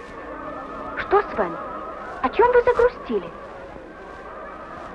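A young woman speaks softly and earnestly.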